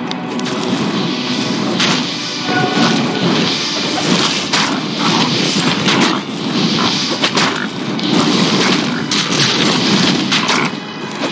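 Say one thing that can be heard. Fireballs burst and crackle.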